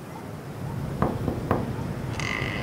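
A metal door latch clicks and rattles.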